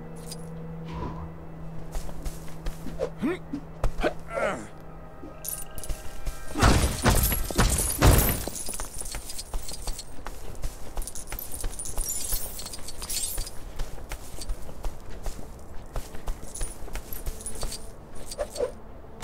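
Coins jingle rapidly as they are collected.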